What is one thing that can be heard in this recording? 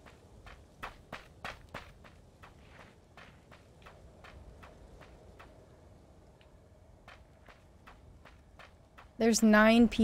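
Footsteps crunch quickly through grass.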